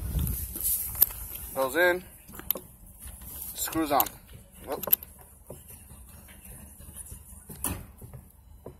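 A metal hose coupling clicks and rattles.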